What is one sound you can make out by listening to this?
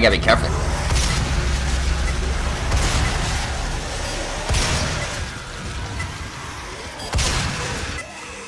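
Shotgun blasts boom loudly.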